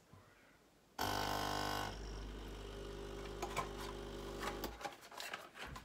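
A coffee machine hums and pumps loudly.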